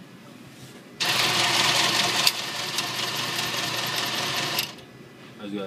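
A cash machine whirs loudly as it counts and pushes out banknotes.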